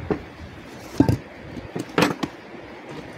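A metal bin knocks against a metal box.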